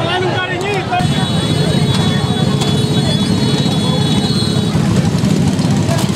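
A motorcycle clanks as men lift it onto a truck.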